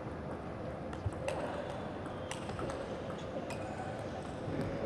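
A ping-pong ball clicks back and forth off paddles and a table in a large, echoing hall.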